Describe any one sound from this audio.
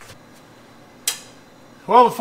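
A metal tool clanks against an engine.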